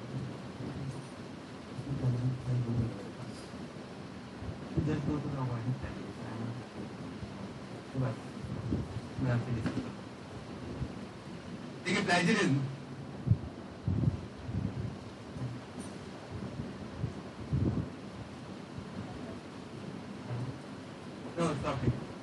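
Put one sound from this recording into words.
A man speaks calmly to an audience in a room with a slight echo.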